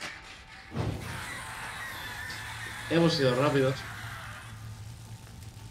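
Flames crackle and hiss.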